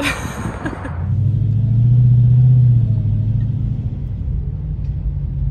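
A car engine rumbles low and loud while driving.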